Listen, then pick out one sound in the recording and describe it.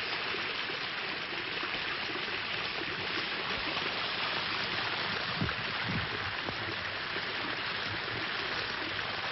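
Rushing water roars steadily.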